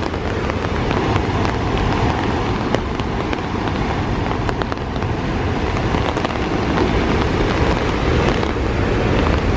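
Waves crash and roar against rocks.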